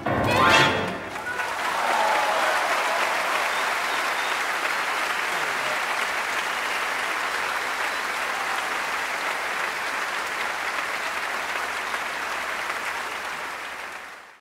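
A large crowd outdoors applauds and cheers.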